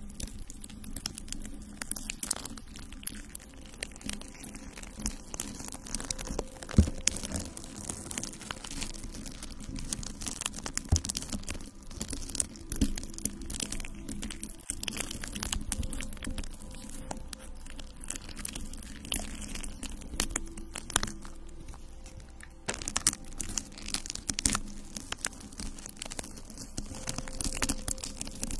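Long fingernails tap and scratch on a microphone close up.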